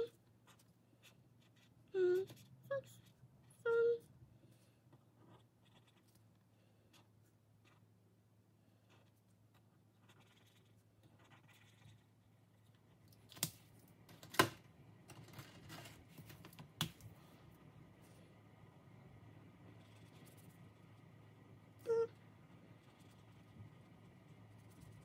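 A marker squeaks and taps softly on paper.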